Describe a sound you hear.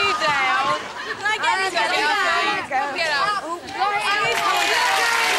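A crowd of women sings along loudly.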